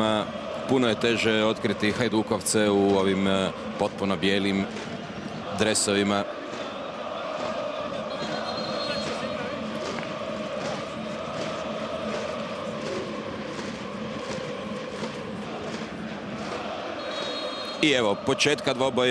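A large stadium crowd chants in the open air.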